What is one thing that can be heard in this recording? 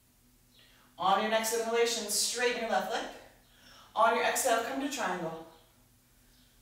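A woman speaks calmly and clearly close by.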